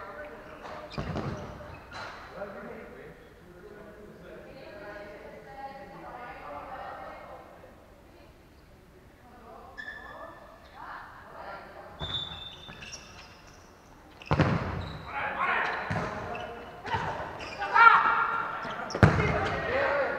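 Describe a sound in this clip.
A ball thuds off a player's foot, echoing in a large hall.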